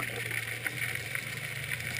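A scuba diver's breathing bubbles gurgle underwater.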